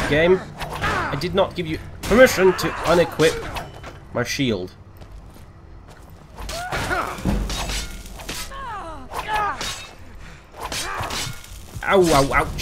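Steel weapons clash and thud against shields.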